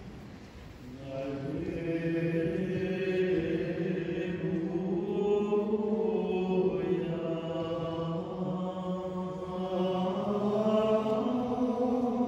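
A group of men chant together in an echoing hall.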